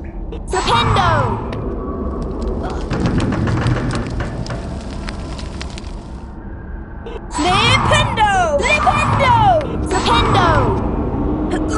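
A magic spell crackles with swooping, sparkling chimes.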